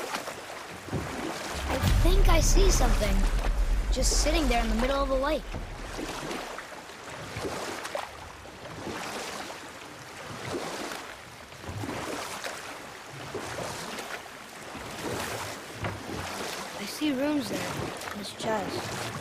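Oars splash in water with slow, steady strokes.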